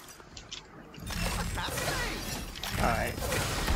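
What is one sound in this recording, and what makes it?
Crackling magical energy whooshes and hums.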